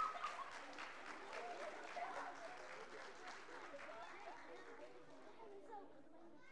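An audience claps in an echoing hall, and the applause fades away.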